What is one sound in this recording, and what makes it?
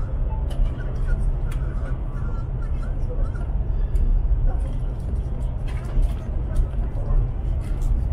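A train rumbles steadily at speed, heard from inside a carriage.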